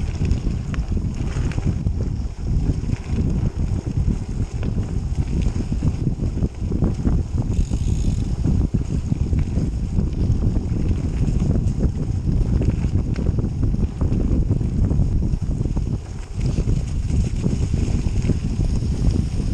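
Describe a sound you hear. Bicycle tyres crunch and rattle over a leaf-covered dirt trail.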